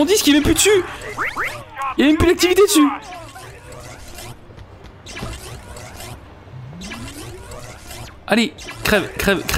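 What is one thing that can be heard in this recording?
An electric weapon crackles and zaps in short bursts.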